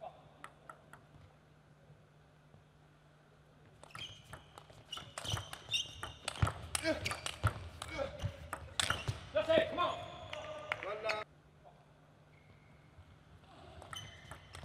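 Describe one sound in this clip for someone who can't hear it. A table tennis ball clicks sharply off paddles and the table in a quick rally.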